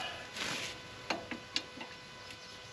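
A metal wrench clinks against a bolt.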